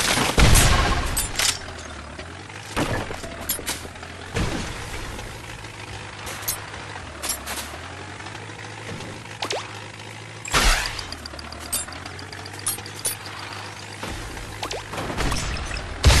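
Small guns fire in quick pops.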